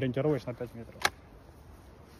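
A shotgun snaps shut.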